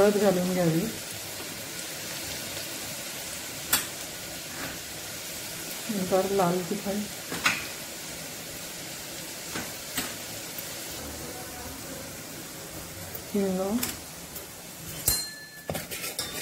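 Oil sizzles steadily in a hot pan.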